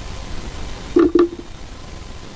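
A small object is set down on a table with a soft knock.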